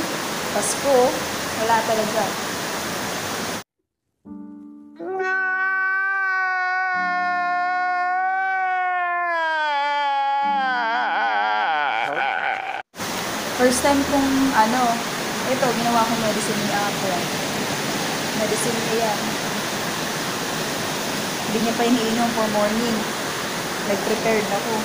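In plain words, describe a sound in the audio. A young woman talks close to a phone microphone.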